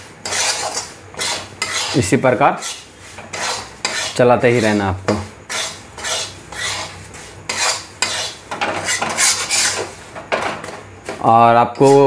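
A metal spatula scrapes and stirs crumbly food in a metal pan.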